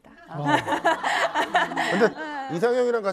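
An elderly woman laughs into a microphone.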